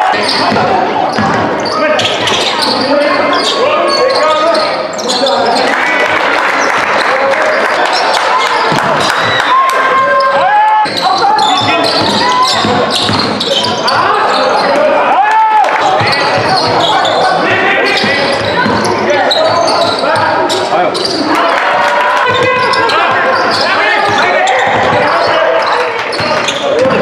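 A crowd of spectators cheers and shouts throughout, echoing in a large hall.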